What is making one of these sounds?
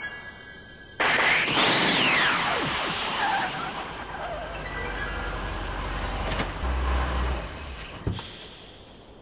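A car roars in with a loud whooshing rush and then settles.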